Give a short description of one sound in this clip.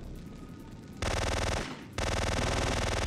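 An automatic gun fires in rapid bursts.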